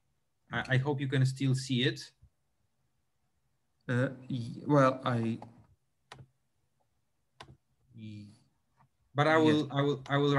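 A middle-aged man speaks calmly through an online call.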